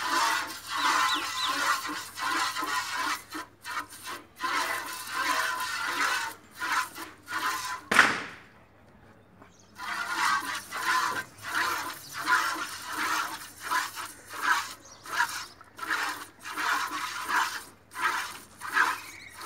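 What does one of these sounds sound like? Milk squirts in quick rhythmic jets into a metal bucket.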